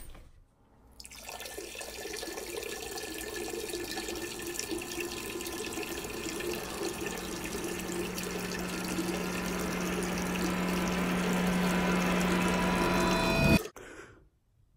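A young man sings a long, rising note close by.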